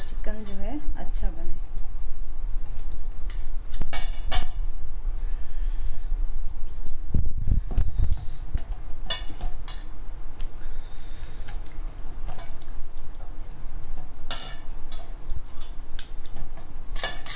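A metal bowl clinks now and then.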